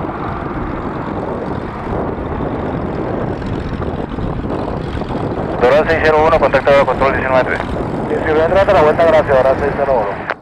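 Jet engines roar loudly as a plane takes off and climbs away.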